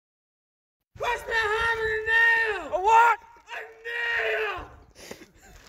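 A man calls out loudly from a distance, outdoors.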